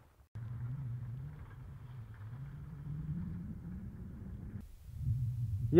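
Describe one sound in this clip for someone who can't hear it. An ATV engine drones in the distance.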